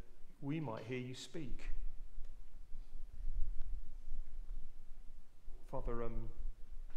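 A middle-aged man reads aloud calmly into a microphone in a large echoing room.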